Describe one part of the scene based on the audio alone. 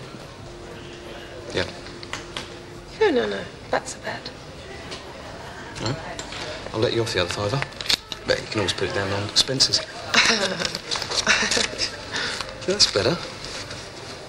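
A woman speaks quietly in conversation.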